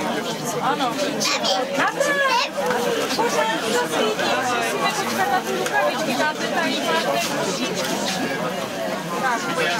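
Several people talk and chatter at once close by.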